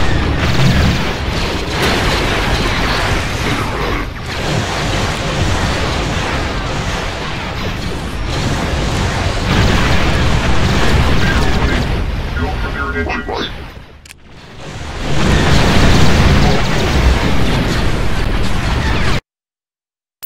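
Explosions and gunfire rumble in a battle.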